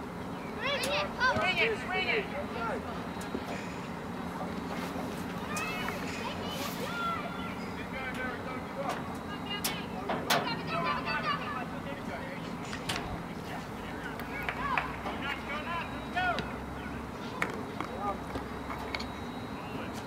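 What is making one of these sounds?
Young women shout to each other from across an open field outdoors.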